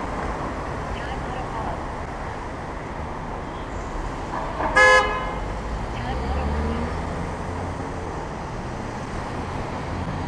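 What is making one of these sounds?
A minivan pulls away ahead and turns at a city junction.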